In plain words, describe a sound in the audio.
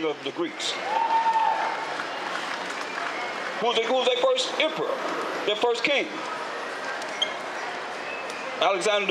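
A man speaks loudly through a microphone and loudspeaker outdoors.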